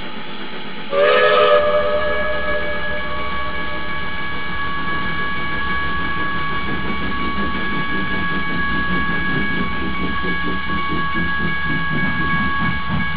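A steam locomotive rumbles steadily along the rails.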